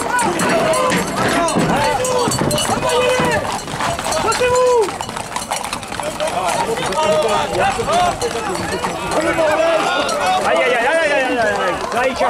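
Hooves clatter on a paved road.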